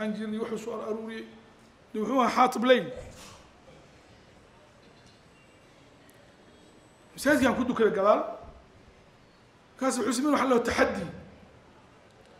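An elderly man speaks slowly and earnestly into a microphone, in bursts with long pauses.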